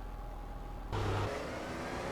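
A car engine starts and revs.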